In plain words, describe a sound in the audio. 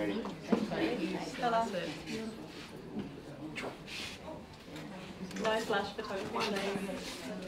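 A woman speaks calmly into a nearby microphone.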